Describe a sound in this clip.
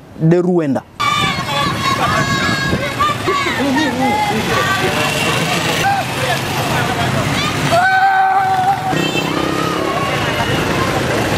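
A crowd sings and chants loudly outdoors.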